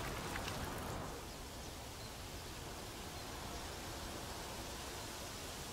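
Leaves rustle softly in a light outdoor wind.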